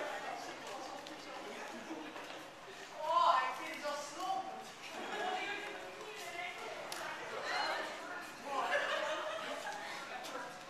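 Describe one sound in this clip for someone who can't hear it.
A crowd of people chatter and call out in a large echoing hall.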